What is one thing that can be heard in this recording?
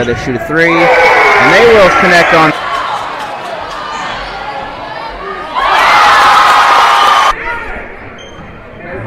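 A crowd cheers and roars in an echoing gym.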